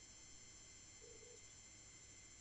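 A short electronic chime sounds as a fish bites.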